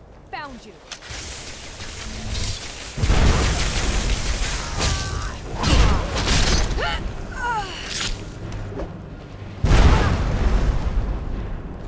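Crackling magic lightning zaps and hisses loudly.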